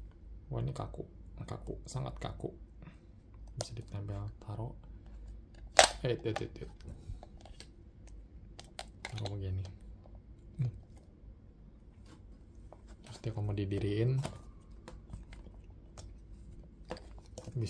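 Hard plastic parts click and snap against each other up close.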